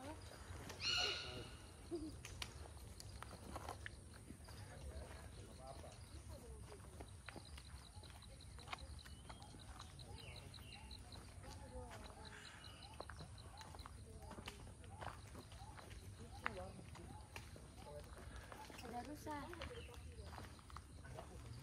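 Footsteps crunch softly on a dirt trail.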